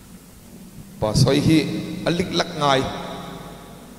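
A middle-aged man speaks into a microphone, heard through loudspeakers in a reverberant hall.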